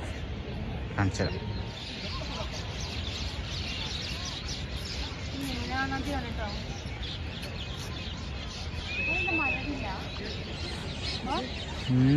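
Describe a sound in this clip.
Birds chirp and call outdoors, some way off.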